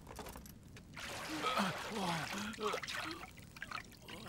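A man groans in pain nearby.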